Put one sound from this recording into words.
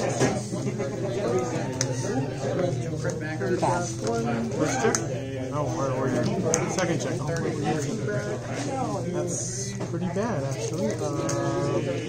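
Many people talk at once in a busy, echoing room.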